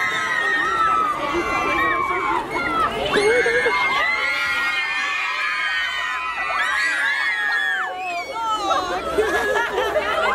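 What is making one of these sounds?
A crowd of young women screams and shrieks excitedly nearby.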